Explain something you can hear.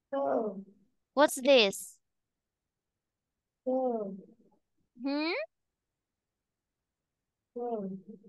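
A young woman speaks with animation over an online call, in short phrases with pauses.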